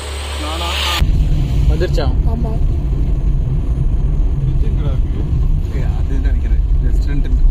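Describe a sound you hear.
A car engine rumbles low as the car drives along a road.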